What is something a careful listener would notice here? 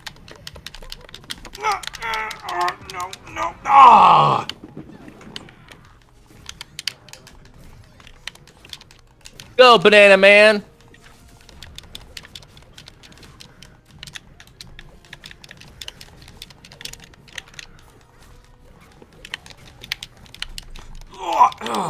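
Video game fighting effects crackle with quick hits and zaps.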